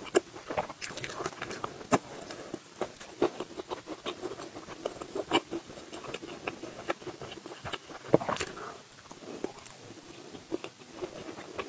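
A young woman chews food wetly close to a microphone.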